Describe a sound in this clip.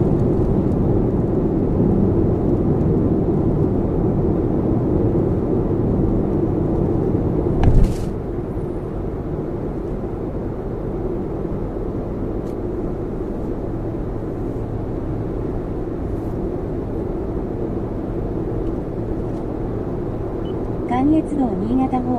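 A car's engine and tyres hum steadily on a highway from inside the car.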